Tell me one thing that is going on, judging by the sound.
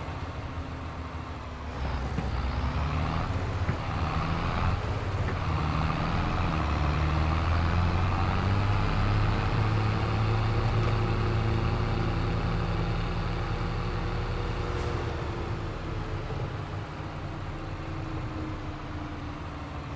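A tractor engine hums steadily, rising as it speeds up and easing off later.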